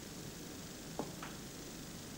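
A cue tip strikes a ball with a sharp click.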